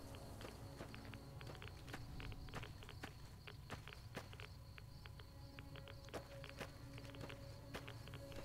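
Footsteps crunch steadily on rough ground.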